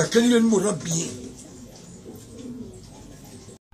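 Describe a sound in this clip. An elderly man speaks with animation, close by.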